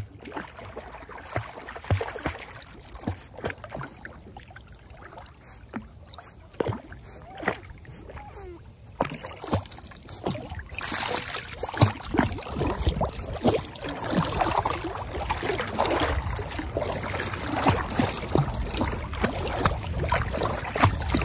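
Water splashes and ripples as puppies paddle close by.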